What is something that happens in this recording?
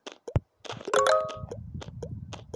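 A short bright chime plays.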